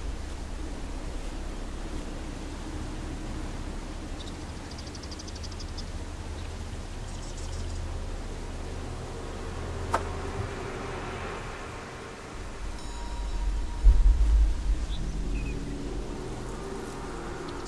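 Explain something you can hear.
Footsteps patter softly on grass.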